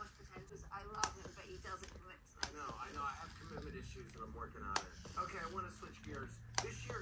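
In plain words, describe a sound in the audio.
A hair straightener clicks shut.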